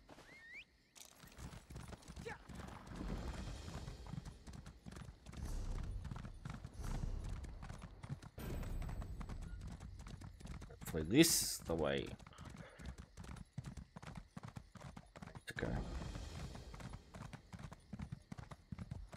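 A horse's hooves gallop steadily on hard ground.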